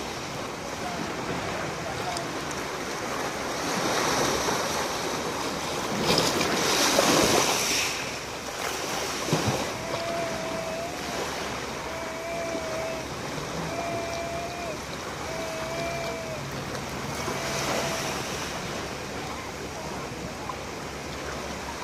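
Small waves wash and break over pebbles close by.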